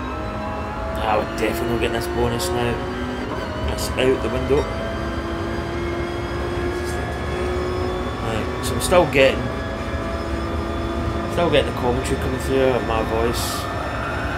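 A racing car engine briefly dips and climbs again as gears shift up.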